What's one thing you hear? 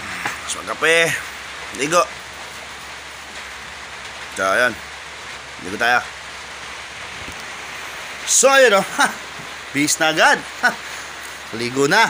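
A young man speaks close to the microphone in short, lively bursts.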